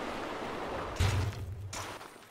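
A heavy thud sounds on landing.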